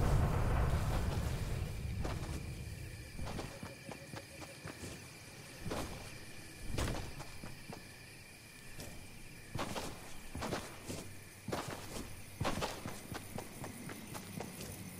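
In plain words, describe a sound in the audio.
Footsteps patter on grass as a game character runs.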